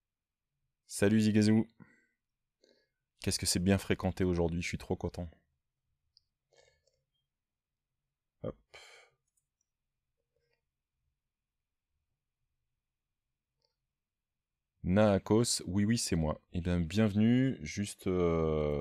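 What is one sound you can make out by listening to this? A middle-aged man talks calmly into a close microphone, pausing now and then.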